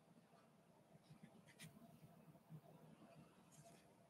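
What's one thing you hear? A fine brush strokes softly across paper.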